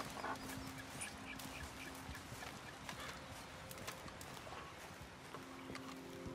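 Footsteps swish through tall grass outdoors.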